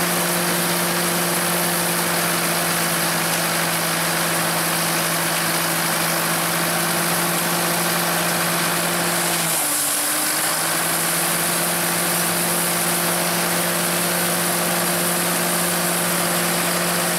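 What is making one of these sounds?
A tractor engine chugs steadily close by.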